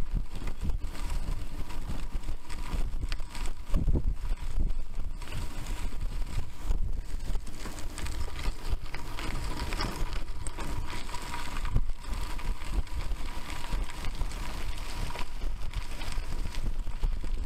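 Bicycle tyres crunch and rattle over a gravel track.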